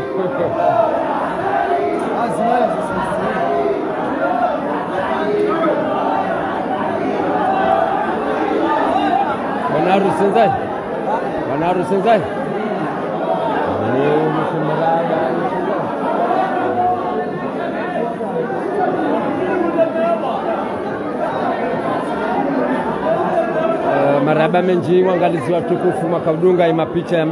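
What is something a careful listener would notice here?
A crowd of men and women talk and chatter loudly nearby in an echoing hall.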